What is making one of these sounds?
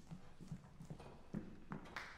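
Footsteps thud on a hollow wooden stage.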